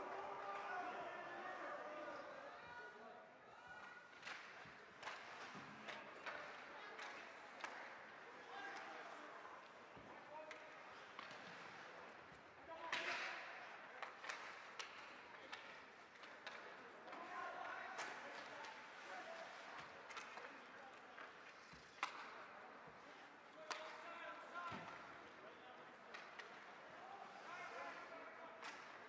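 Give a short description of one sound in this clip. A crowd of spectators murmurs and calls out in a large echoing rink.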